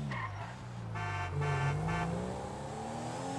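Car tyres screech on a sharp turn.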